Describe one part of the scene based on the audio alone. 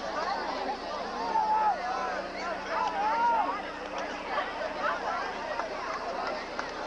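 A large outdoor crowd cheers and shouts from the stands.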